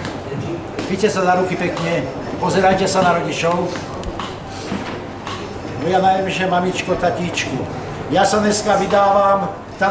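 A keyboard plays music through a loudspeaker.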